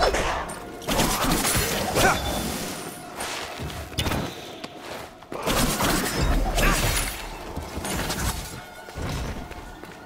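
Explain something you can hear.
Swords slash and whoosh in rapid bursts.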